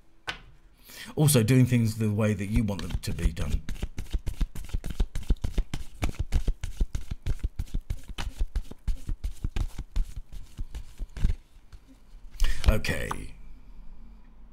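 A man speaks softly close to a microphone.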